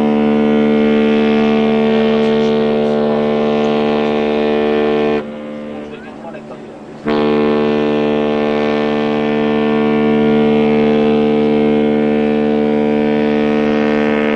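A ship's horn blasts long and deep across the water.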